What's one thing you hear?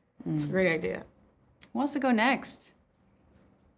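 A woman speaks emotionally, close by, her voice wavering.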